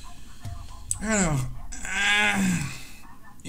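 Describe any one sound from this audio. A young man makes drawn-out exclamations close to a microphone.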